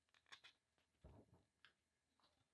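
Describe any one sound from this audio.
Paper rustles as a sheet is peeled away.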